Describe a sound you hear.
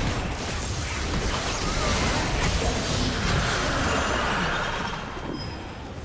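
Game spell effects crackle and whoosh in a fight.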